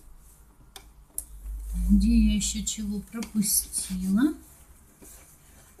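A sewing machine hums as it stitches fabric.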